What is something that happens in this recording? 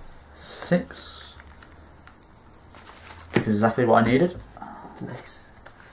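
Playing cards are shuffled by hand.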